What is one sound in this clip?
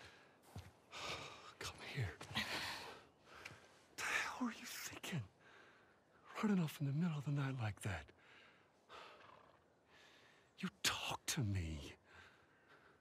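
A man speaks in a low, gentle voice up close.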